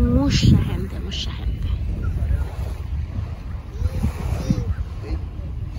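Small waves lap gently on the shore.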